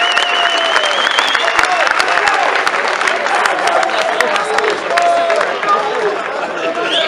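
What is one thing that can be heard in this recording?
People in a crowd clap their hands in rhythm.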